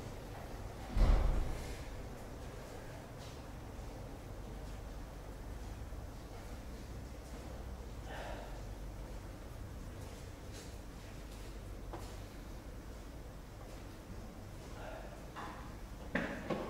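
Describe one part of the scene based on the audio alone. A table tennis ball taps and bounces a few times.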